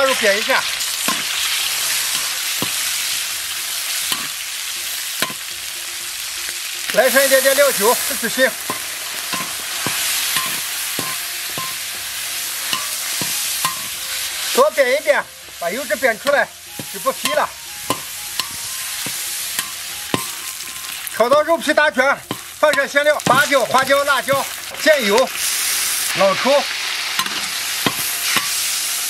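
A metal spatula scrapes and knocks against a pan.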